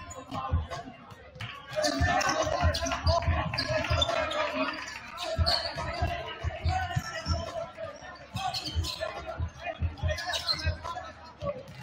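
Basketballs bounce on a hardwood floor in a large echoing gym.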